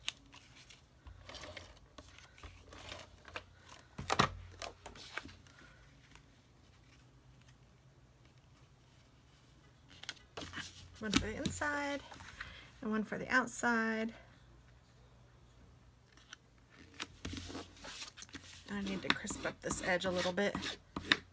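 Paper rustles and crinkles as cards are handled.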